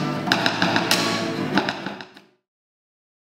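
An acoustic guitar strums a lively rhythm.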